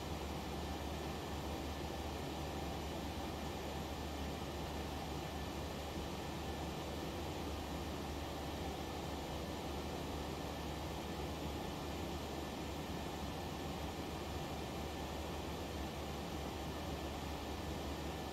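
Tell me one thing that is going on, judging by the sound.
A jet engine drones steadily, heard from inside a cockpit.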